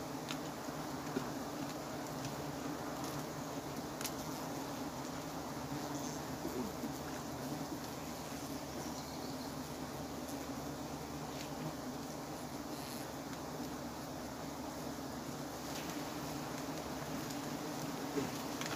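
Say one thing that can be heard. Bees buzz loudly in a dense swarm.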